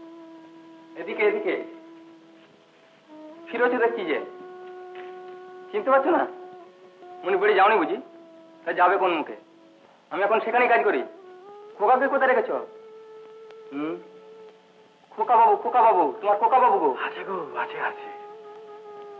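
A man speaks earnestly nearby.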